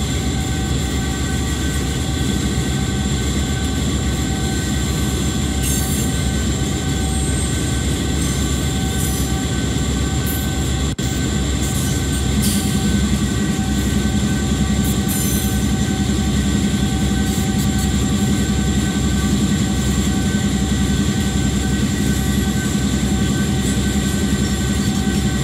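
A diesel locomotive engine rumbles and drones steadily.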